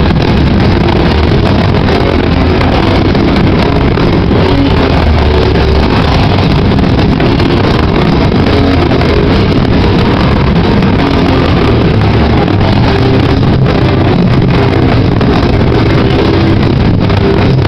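A man screams into a microphone, heard loud and distorted.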